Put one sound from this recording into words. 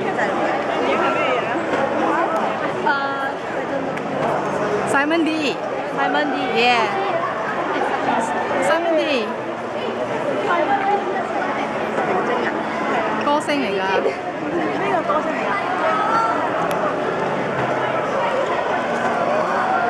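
A crowd of young people chatters and calls out nearby.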